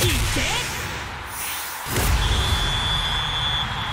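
A ball is struck hard with a whoosh.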